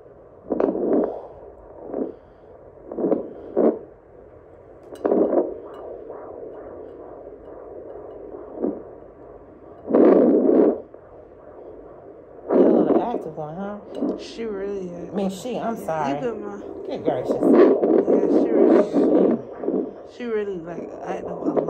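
A handheld heart monitor hisses and gives out whooshing pulses.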